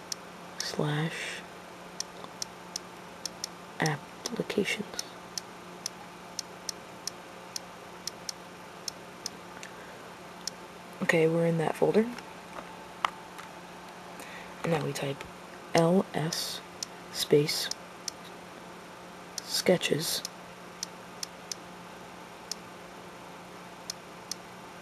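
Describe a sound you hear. Soft keyboard clicks tick as a touchscreen is typed on.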